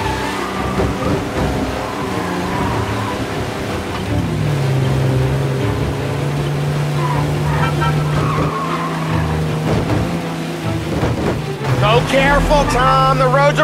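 An old car engine hums steadily as it drives.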